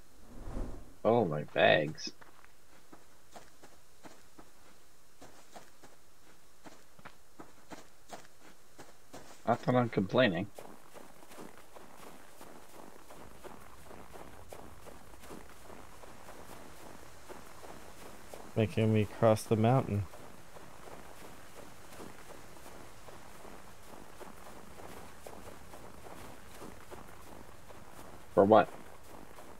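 A man speaks calmly into a close microphone in short bursts.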